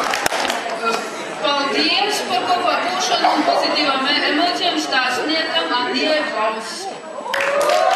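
A woman speaks into a microphone through loudspeakers.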